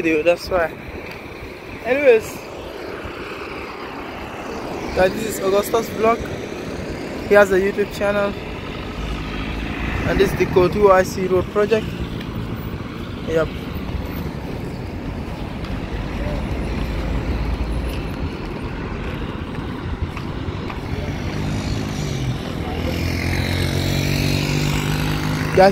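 Cars and trucks drive past on a nearby road.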